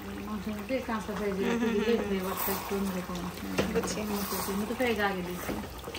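A wooden spoon stirs and scrapes a thick stew in a metal pot.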